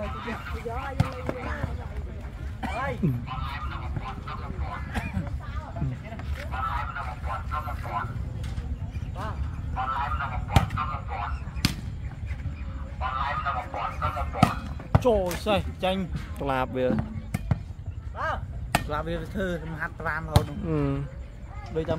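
A ball is struck by hands with sharp slaps.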